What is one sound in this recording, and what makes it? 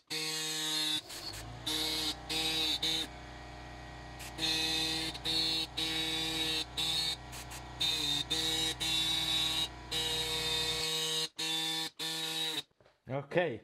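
A handheld engraving tool buzzes in short bursts against metal.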